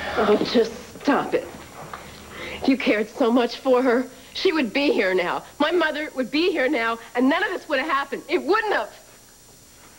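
A woman speaks urgently and with animation close by.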